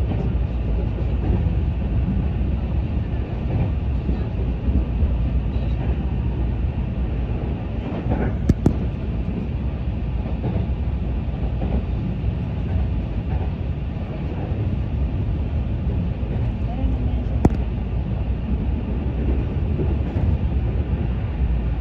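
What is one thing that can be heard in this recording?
A train rumbles steadily along the tracks, heard from inside.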